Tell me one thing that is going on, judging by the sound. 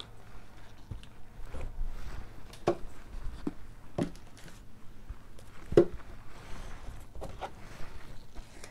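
Plastic cups are set down on a table with light knocks.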